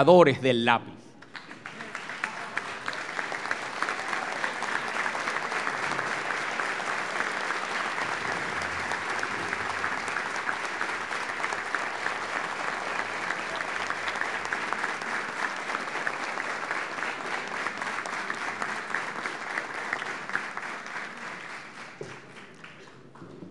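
A crowd applauds steadily in a large room.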